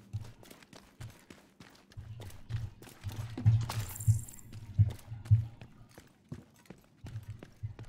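Debris crunches underfoot.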